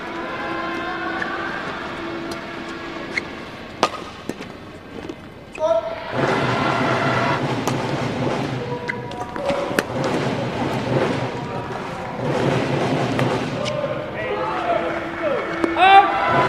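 Shuttlecock hits crack sharply off rackets in a large echoing hall.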